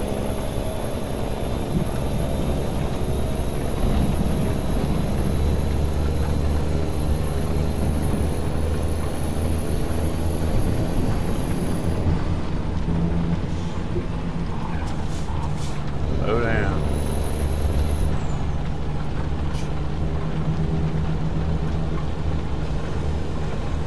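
Rain patters on a windshield.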